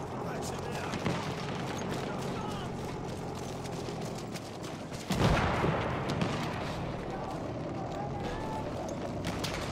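Gunfire crackles from afar.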